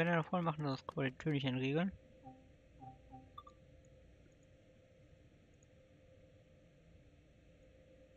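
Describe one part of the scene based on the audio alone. A train cab hums faintly and steadily.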